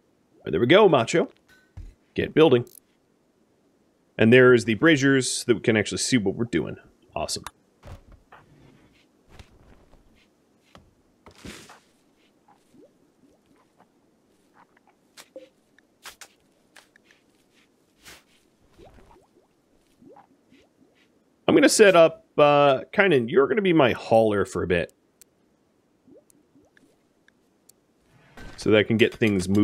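A man talks casually into a close microphone, in short bursts with pauses.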